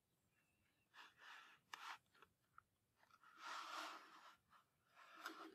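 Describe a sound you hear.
A cardboard matchbox drawer slides open with a soft scrape.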